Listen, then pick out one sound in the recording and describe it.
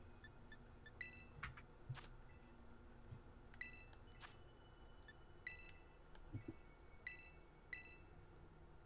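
Short electronic menu beeps chime now and then.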